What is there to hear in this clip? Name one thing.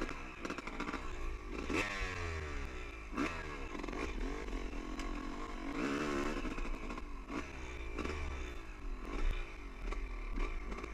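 A dirt bike engine revs up and down.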